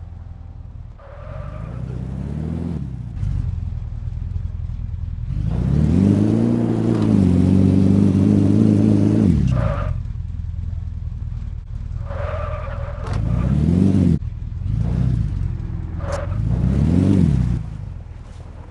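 A sports car engine revs and roars, rising and falling in bursts.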